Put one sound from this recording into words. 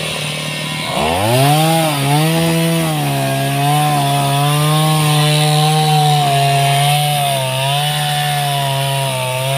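A small gas chainsaw cuts through a tree trunk.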